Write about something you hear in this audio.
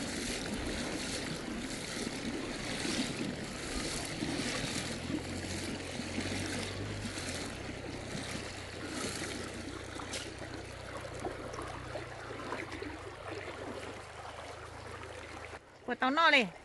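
A shallow river ripples and flows steadily.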